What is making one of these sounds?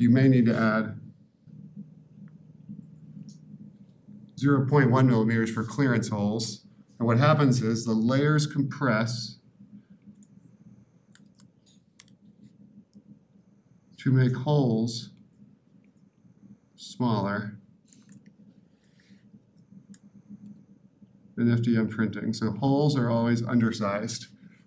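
A man lectures calmly into a microphone, pausing between phrases.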